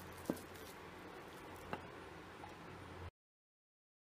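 A metal spoon scrapes and clinks against a metal bowl.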